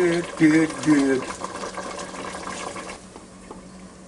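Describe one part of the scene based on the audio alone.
A glass lid clinks down onto a pot.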